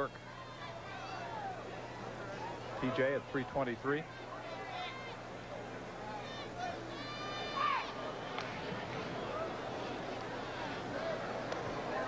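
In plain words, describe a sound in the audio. A crowd murmurs and chatters in a large open stadium.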